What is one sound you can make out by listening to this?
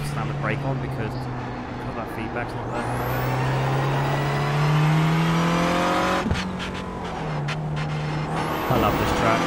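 A racing car engine drones and revs up through the gears.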